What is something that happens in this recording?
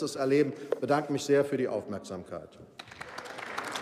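An elderly man speaks firmly into a microphone in a large hall.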